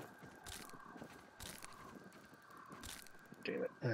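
Grass stalks are chopped with soft swishes.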